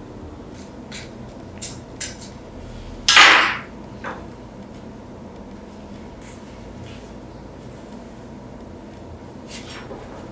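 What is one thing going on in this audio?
Small metal lighter parts clink in gloved hands.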